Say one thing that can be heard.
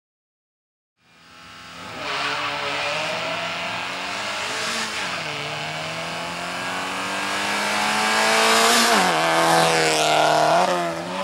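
A rally car engine revs loudly, shifting gears, as the car races up close and passes by.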